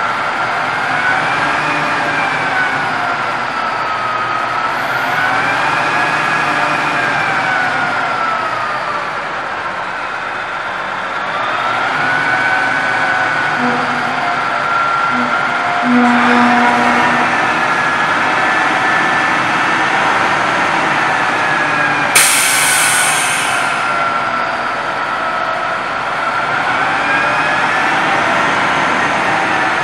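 A heavy truck engine rumbles steadily nearby.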